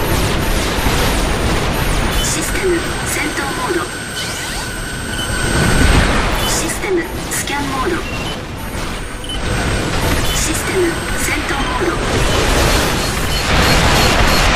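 Gunfire and explosions crackle and boom.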